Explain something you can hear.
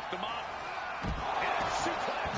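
A heavy body thuds onto the floor.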